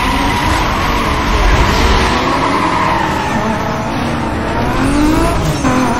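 A sports car engine roars as it accelerates at full throttle.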